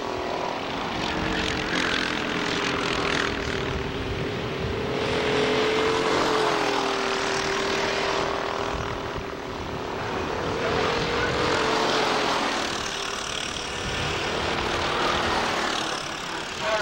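Kart engines whine loudly as karts race past.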